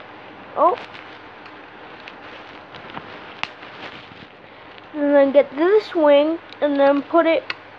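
A child speaks animatedly, close to the microphone.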